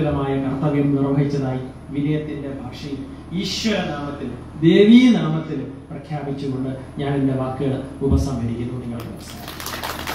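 A middle-aged man speaks calmly into a microphone, heard through a loudspeaker.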